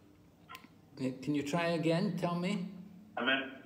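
An elderly man speaks close to the microphone.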